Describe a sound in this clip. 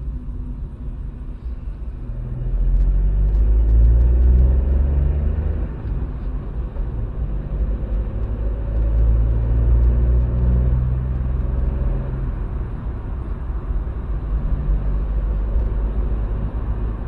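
A car engine hums steadily from inside a moving car, rising and falling in pitch.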